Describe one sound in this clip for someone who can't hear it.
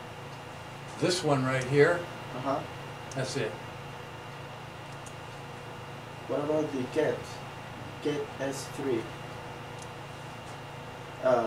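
An older man speaks calmly in short bursts.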